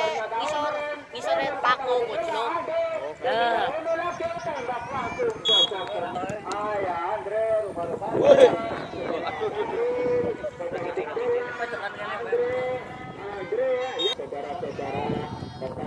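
A crowd of spectators shouts and cheers outdoors.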